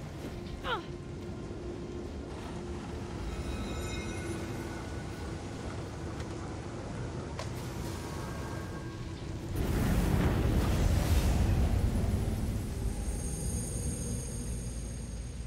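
Flames roar with a steady rush that swells loudly partway through.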